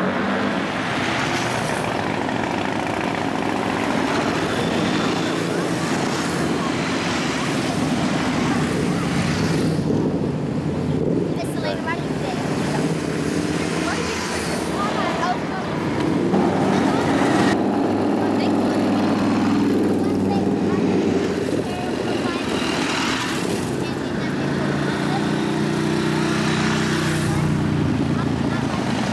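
Many motorcycle engines rumble and growl as they ride past close by.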